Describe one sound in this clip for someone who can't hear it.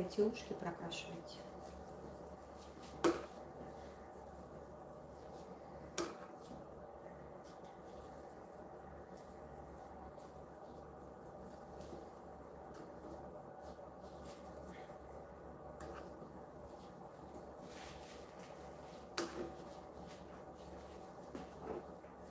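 A brush softly strokes dye through wet hair.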